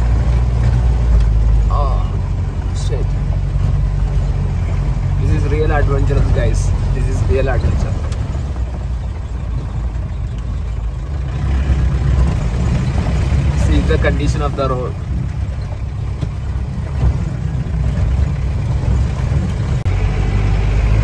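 Tyres crunch and rumble over a snowy, icy road.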